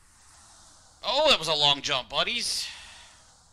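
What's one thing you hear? A middle-aged man speaks briefly and casually into a close microphone.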